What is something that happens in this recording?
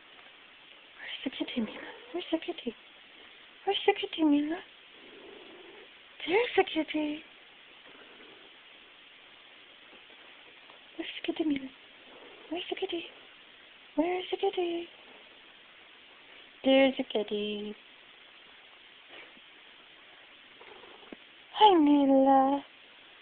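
A cat meows close by.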